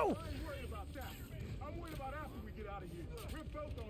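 Blows thud and smack during a fistfight.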